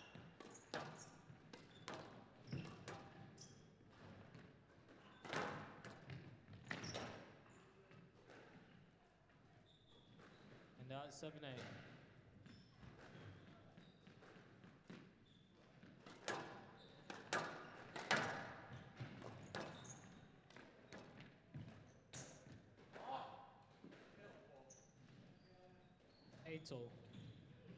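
Rubber shoes squeak on a court floor.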